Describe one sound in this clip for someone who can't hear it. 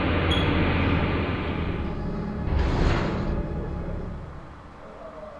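A lift's machinery hums low as it descends.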